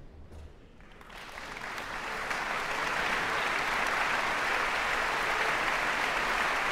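A large audience applauds loudly in a big echoing hall.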